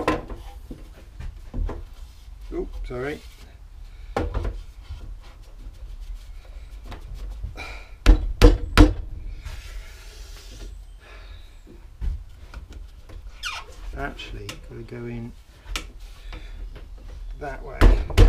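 A man talks calmly and close by.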